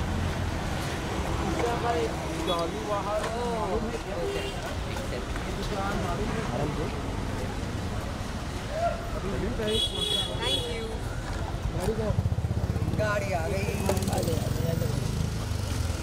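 Men call out loudly nearby.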